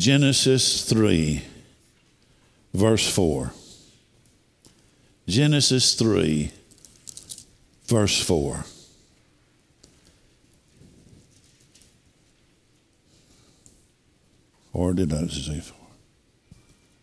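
A middle-aged man speaks slowly and deliberately into a microphone, in short bursts with pauses, in a room with some echo.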